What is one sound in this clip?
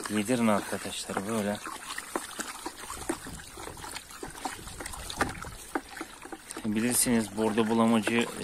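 A stick stirs thick wet paste in a bucket with soft squelches.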